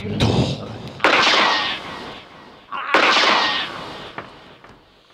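A man cries out in pain over a microphone.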